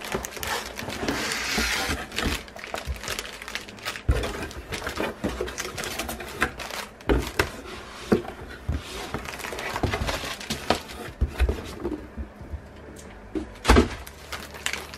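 Cardboard flaps of a box rustle and thump as they are handled.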